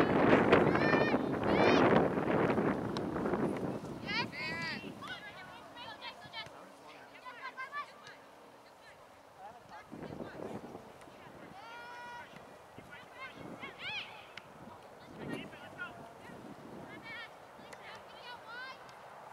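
Young girls shout to each other across an open field, some way off.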